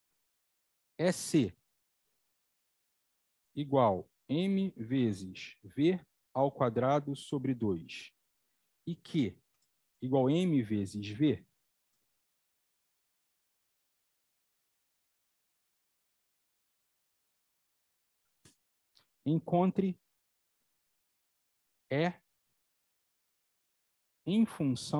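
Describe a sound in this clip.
A man speaks calmly through a microphone, in short bursts with pauses.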